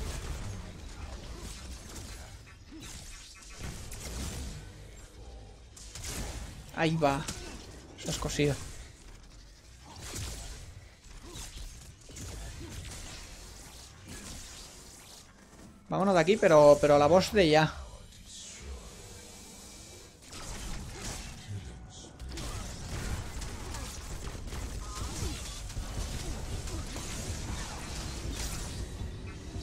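Energy weapons zap and crackle in rapid bursts.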